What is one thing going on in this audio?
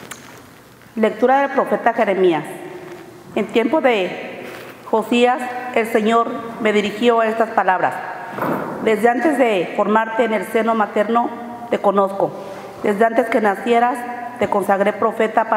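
A woman speaks calmly into a microphone, heard through a loudspeaker in an echoing hall.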